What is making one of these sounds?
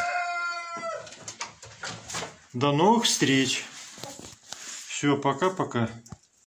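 Hens cluck and squawk close by.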